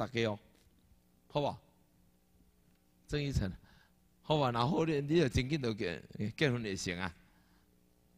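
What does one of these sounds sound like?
A middle-aged man speaks expressively into a microphone, in short bursts with pauses.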